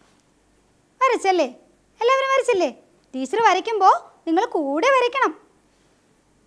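A woman speaks clearly and with animation close to a microphone.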